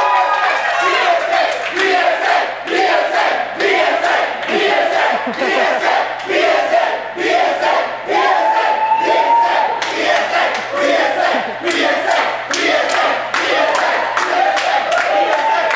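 Hands clap in a quick rhythm.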